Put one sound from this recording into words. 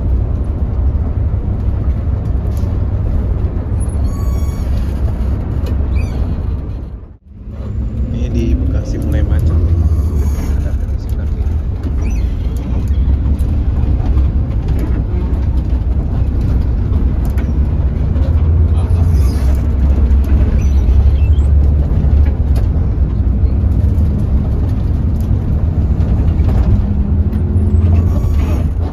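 A large engine rumbles steadily inside a moving vehicle.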